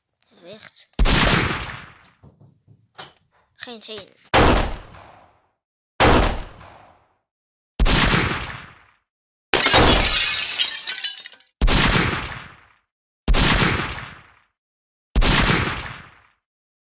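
A toy blaster fires foam darts with loud bursts, again and again.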